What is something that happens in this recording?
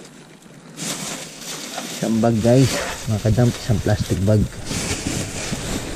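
A plastic carrier bag crackles loudly as it is lifted.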